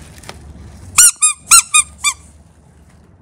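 A rubber toy squeaks as it is squeezed.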